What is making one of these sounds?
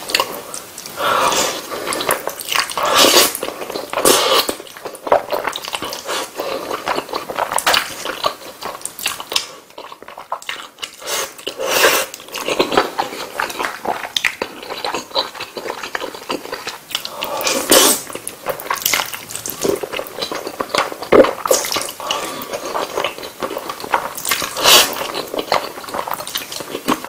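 A man slurps noodles loudly, close to the microphone.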